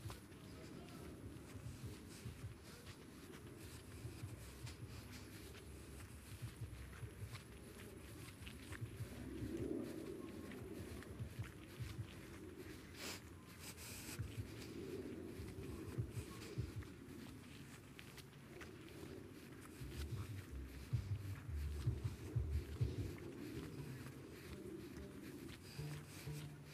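A woman's footsteps crunch on gravel and grass outdoors.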